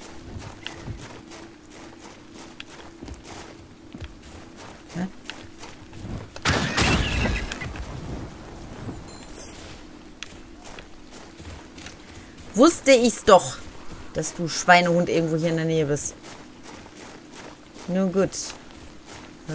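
Footsteps run on a gravel path.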